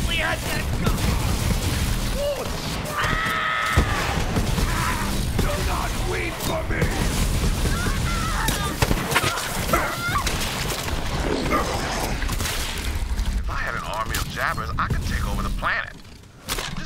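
A futuristic gun fires rapid energy shots.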